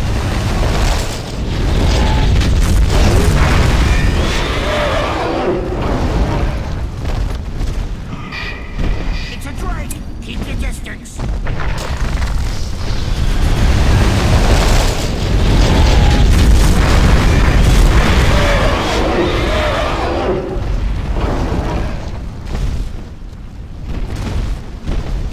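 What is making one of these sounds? A column of fire roars down and explodes with a deep rumble.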